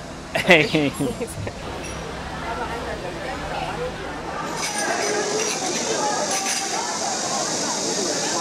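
A crowd of people chatters in the background.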